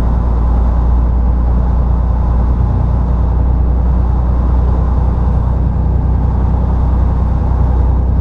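A diesel truck engine drones under load while climbing, heard from inside the cab.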